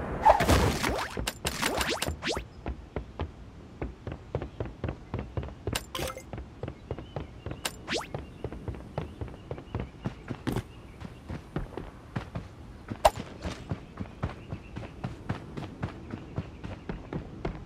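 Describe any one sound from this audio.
Footsteps tap quickly and steadily.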